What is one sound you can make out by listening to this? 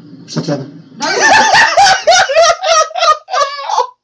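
A man laughs loudly and heartily close by.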